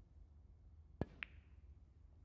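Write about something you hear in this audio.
A cue tip strikes a ball.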